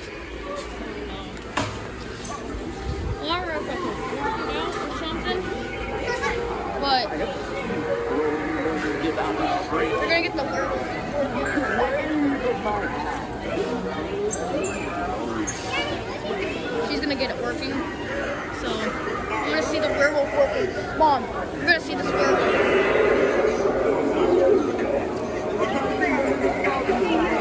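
People chatter nearby.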